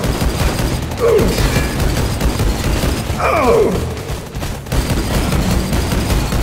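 Pistols fire in rapid shots.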